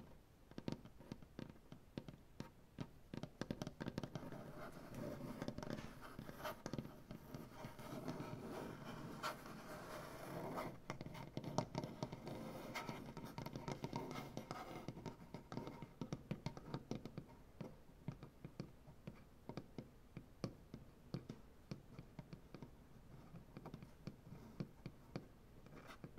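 Fingertips rub and brush softly across wood.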